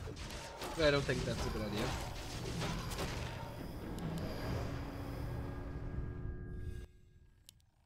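Spells and weapons clash in a loud battle.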